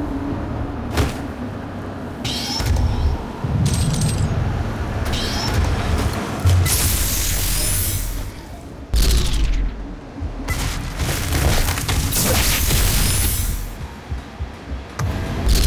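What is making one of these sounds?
A heavy gun fires in loud, booming bursts.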